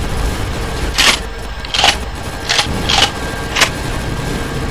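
Laser guns fire in short bursts.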